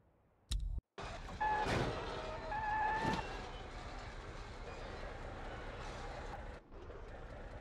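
A truck's metal body scrapes and clatters along a road.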